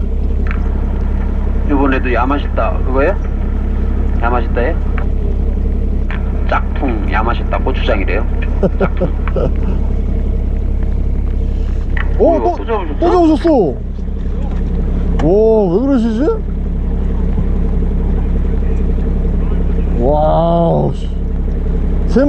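A boat engine hums low and steady.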